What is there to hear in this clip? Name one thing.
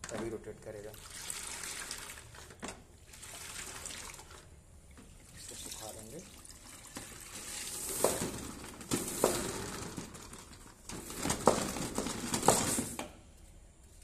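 A mop spins in a bucket, swishing water.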